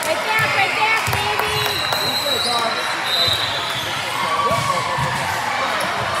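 Young women shout and call out to each other in a large echoing gym.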